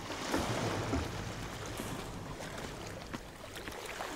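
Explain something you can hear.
Water trickles and splashes down into a pool.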